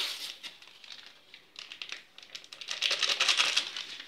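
A paper packet rustles and crinkles.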